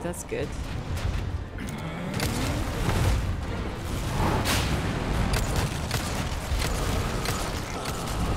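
A deep, heavy rumble drones throughout.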